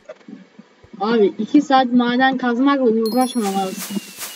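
A short bright victory tune plays.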